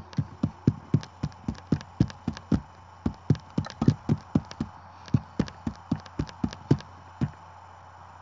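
Sharp tap sounds click in quick succession in time with the beat.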